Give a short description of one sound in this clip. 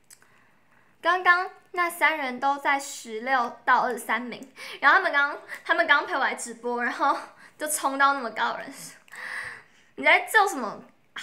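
A young woman speaks brightly and with animation, close to a phone microphone.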